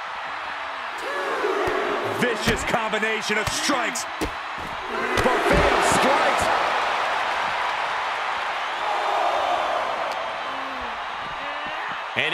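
Heavy blows thud as wrestlers strike each other.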